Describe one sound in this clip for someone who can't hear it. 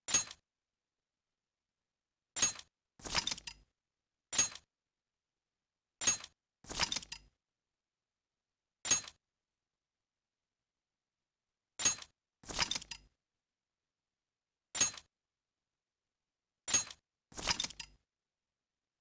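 Short game menu chimes and whooshes sound as message boxes pop up and close.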